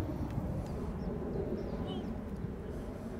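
A football thuds as it is kicked on grass.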